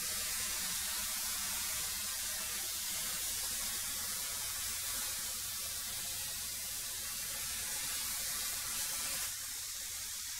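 A wood planer runs with a loud, steady roar and whine.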